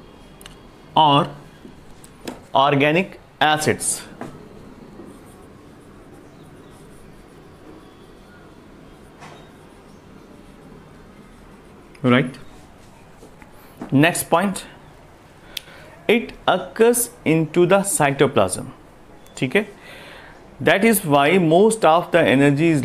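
A man speaks clearly and calmly, close by, in short bursts.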